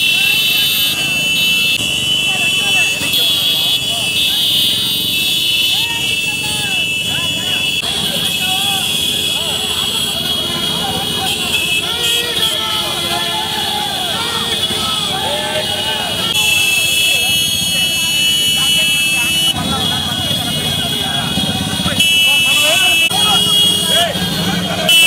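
Many motorcycle engines rumble and putter together.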